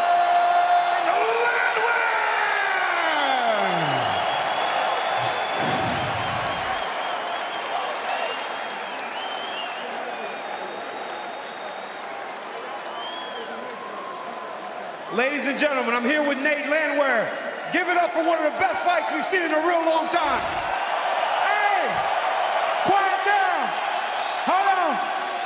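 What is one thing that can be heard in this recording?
A crowd cheers loudly in a large arena.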